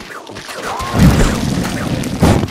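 A flame bursts with a loud whoosh.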